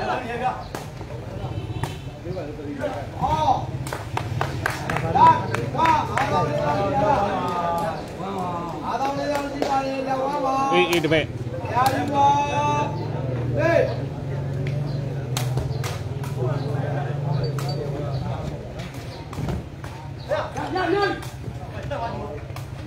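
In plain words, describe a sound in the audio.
A crowd of spectators chatters and cheers loudly outdoors.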